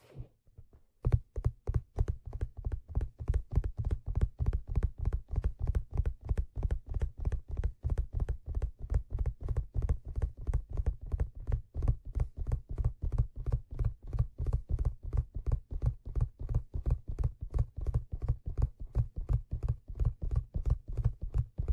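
Fingertips tap rapidly and steadily on a leather hat, close to a microphone.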